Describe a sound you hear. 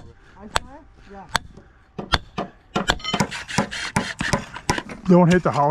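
A rubber mallet knocks sharply on a wooden stake.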